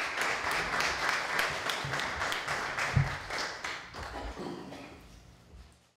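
A small group of people applauds in a room, then the clapping fades away.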